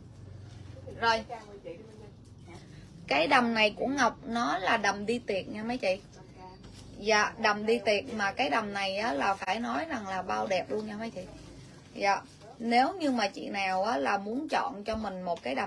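A woman speaks close by with animation.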